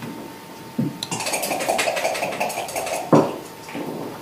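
Game pieces click and clatter against each other on a board.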